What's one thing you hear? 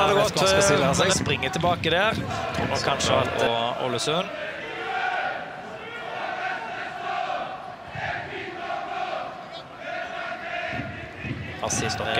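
A large stadium crowd chants and cheers loudly outdoors.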